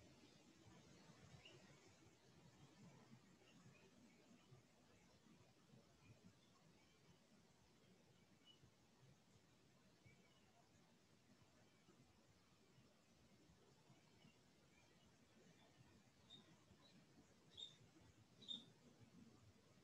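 A woman breathes slowly and quietly nearby.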